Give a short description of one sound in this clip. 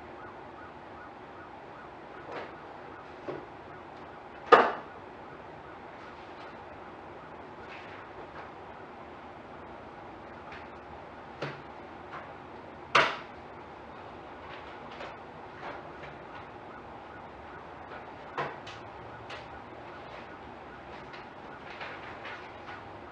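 A man speaks calmly from across a quiet room.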